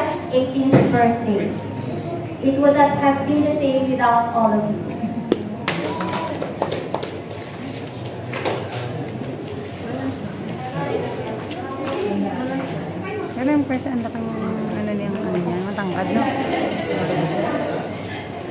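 A crowd of guests chatters in the background.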